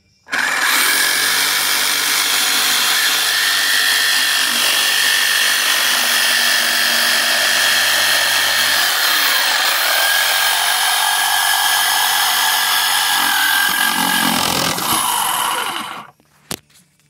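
A jigsaw cuts through a wooden board.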